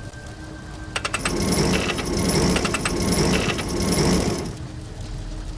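Hands and boots clank on a metal ladder during a climb.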